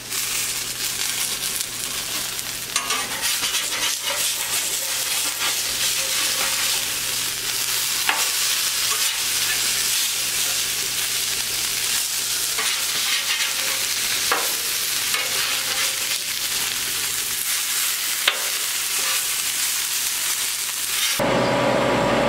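Food sizzles loudly on a hot griddle.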